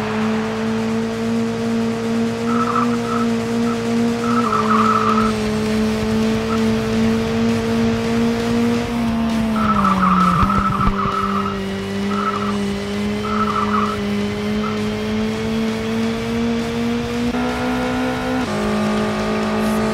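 A race car engine drones steadily, with its pitch dropping and rising as the gears shift.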